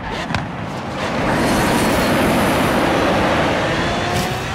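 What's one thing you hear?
Tyres hiss and screech as a car slides through a bend.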